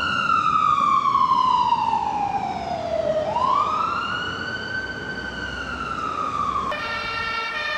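An ambulance siren wails, falling and rising in pitch.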